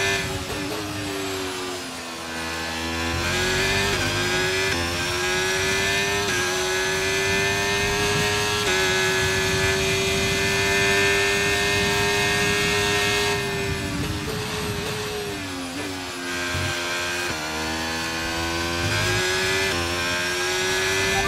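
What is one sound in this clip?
A racing car engine screams at high revs, climbing through the gears and dropping in pitch when braking.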